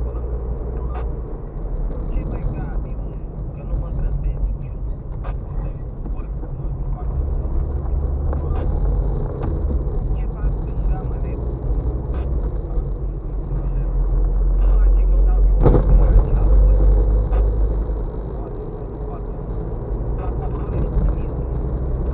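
A car's interior rattles and knocks over bumps.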